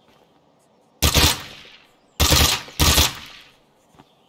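A rifle fires a few quick bursts of loud shots.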